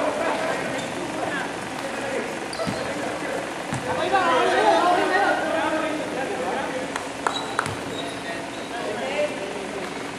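Sneakers squeak sharply on a hard court floor in a large echoing hall.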